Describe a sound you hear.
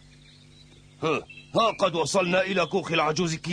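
An elderly man speaks in surprise.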